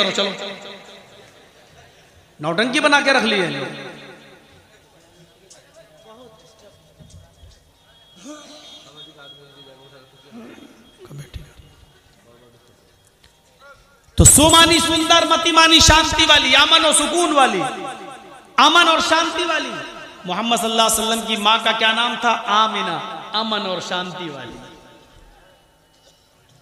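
A man speaks through a microphone, chanting in loud, sweeping bursts between quiet pauses.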